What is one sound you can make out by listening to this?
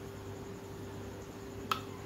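A metal spoon scrapes and clinks against a metal plate.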